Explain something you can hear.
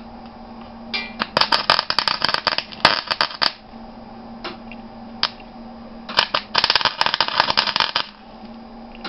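A welding torch crackles and sputters loudly in short bursts.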